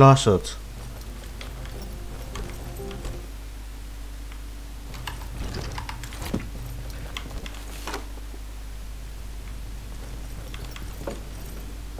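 Light footsteps patter as a game character walks.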